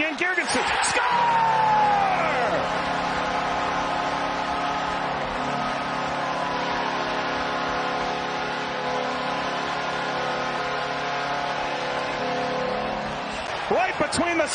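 A large crowd cheers and roars in a big echoing arena.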